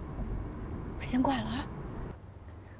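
A young woman speaks gently into a phone, close by.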